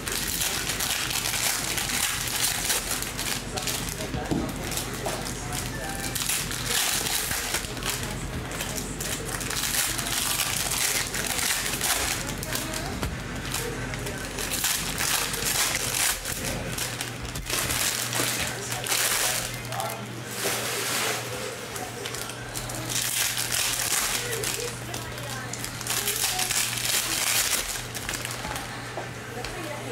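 Foil card wrappers crinkle and rustle close by.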